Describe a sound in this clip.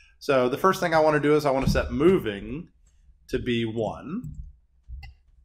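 An older man speaks calmly into a close microphone.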